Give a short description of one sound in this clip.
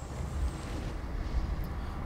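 Electric sparks crackle and snap.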